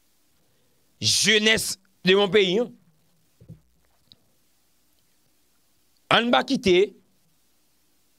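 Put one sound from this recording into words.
A young man speaks calmly and closely into a microphone, in short phrases with pauses.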